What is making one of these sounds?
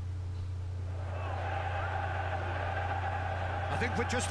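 A large stadium crowd roars and cheers, echoing.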